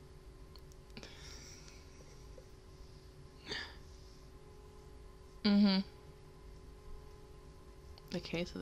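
A young woman speaks softly, close to a microphone.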